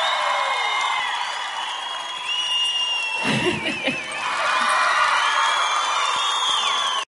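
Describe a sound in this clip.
A woman sings into a microphone over loudspeakers.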